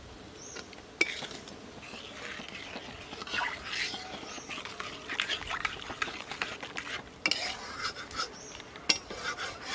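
A metal spatula scrapes and clatters against an iron pan.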